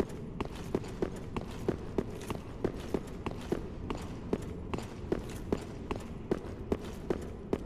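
Armoured footsteps run quickly over a stone floor.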